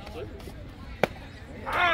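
A metal bat cracks sharply against a baseball.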